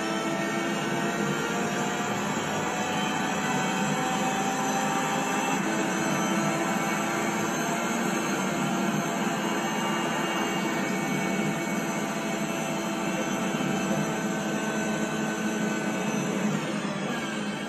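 A racing car engine roars at high revs through a television speaker.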